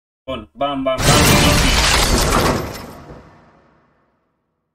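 A bright game win sound swells and fades away.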